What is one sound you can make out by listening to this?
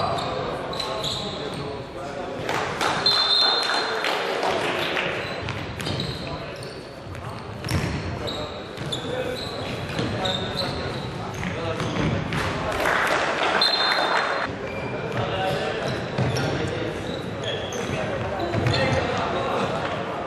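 Sneakers squeak sharply on a hard indoor floor.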